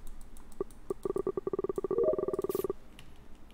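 A game's electronic tones pulse rapidly and then stop.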